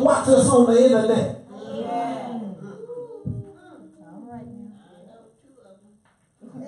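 A man preaches with animation through a microphone in a room that echoes slightly.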